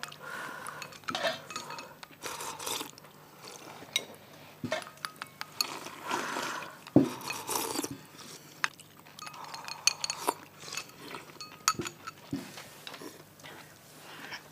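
Chopsticks and spoons clink against bowls.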